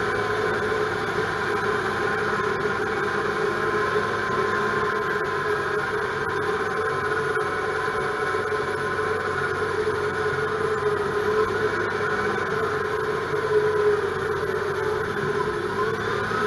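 A diesel engine of a heavy machine drones steadily up close.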